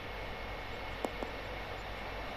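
A golf ball clatters against tree branches.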